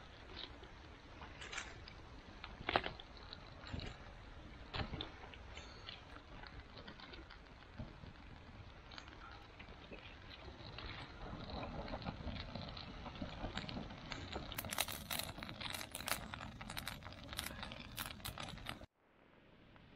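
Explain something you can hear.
A small fire crackles and pops.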